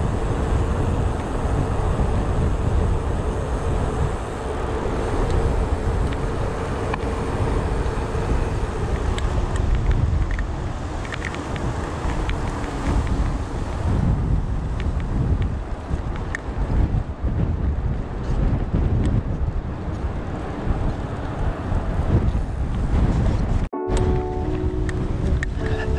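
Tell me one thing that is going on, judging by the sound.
Wind rushes loudly past a moving bicycle outdoors.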